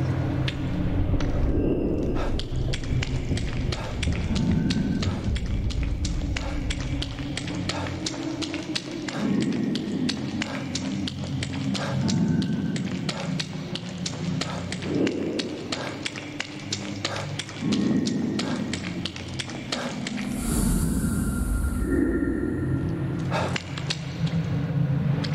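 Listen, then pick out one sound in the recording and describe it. Footsteps thud quickly in a steady rhythm.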